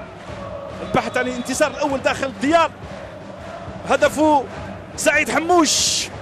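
Men shout loudly across an open outdoor field.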